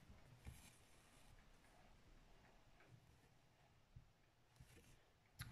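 Fingers rub and brush against stretched fabric close by.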